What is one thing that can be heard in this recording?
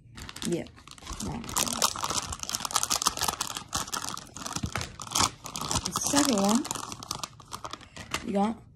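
A plastic wrapper crinkles as it is torn and opened by hand.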